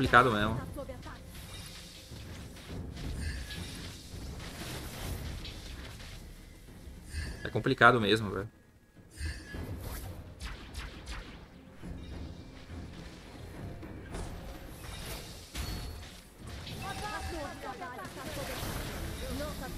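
Video game battle effects clash and whoosh.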